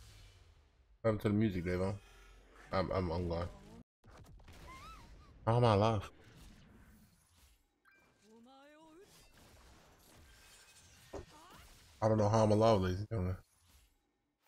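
A man speaks close to a microphone, with animation.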